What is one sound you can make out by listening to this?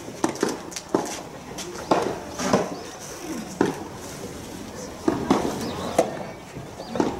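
Sneakers scuff and squeak on the court.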